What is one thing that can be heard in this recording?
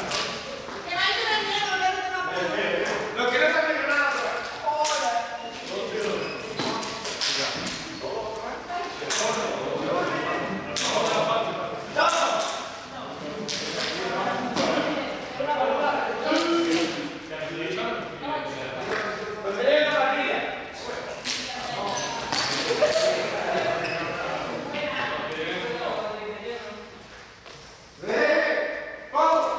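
Young people talk and call out over each other in a large echoing hall.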